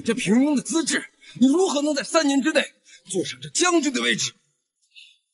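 A young man speaks scornfully and sharply.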